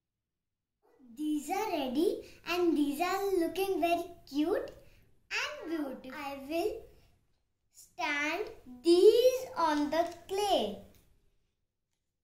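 A young girl talks with animation, close by.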